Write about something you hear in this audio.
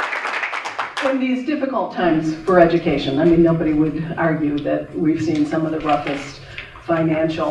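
An elderly woman speaks calmly into a microphone, heard through a loudspeaker.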